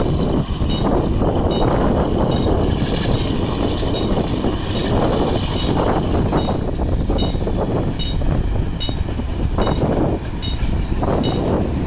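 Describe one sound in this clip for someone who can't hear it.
Train wheels clatter rhythmically on the rails.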